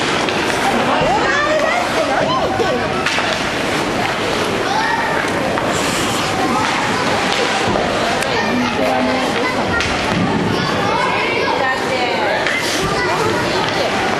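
Children shout and call out in a large echoing rink.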